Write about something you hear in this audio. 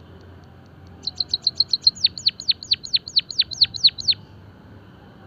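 A white-headed munia sings a rapid series of high, sharply falling notes.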